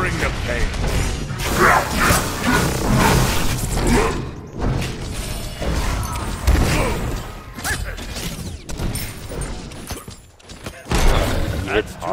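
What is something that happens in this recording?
Fiery magic blasts burst and crackle in a fight.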